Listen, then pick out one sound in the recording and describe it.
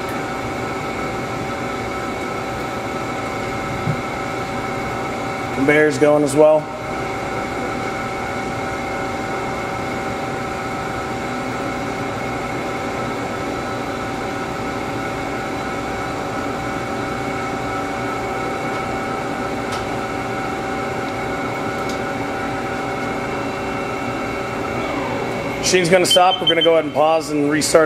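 A machine hums steadily with a high whine.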